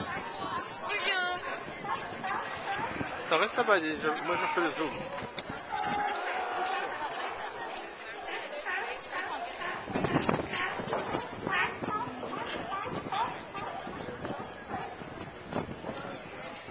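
A young boy talks animatedly close by.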